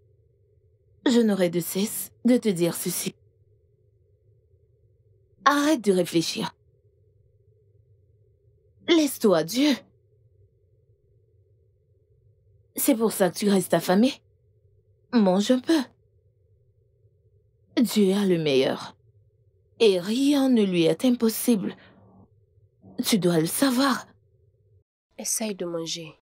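A young woman speaks tearfully and pleadingly, close by.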